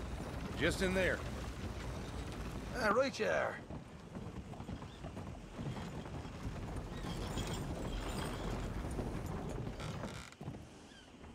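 Wagon wheels rumble and creak.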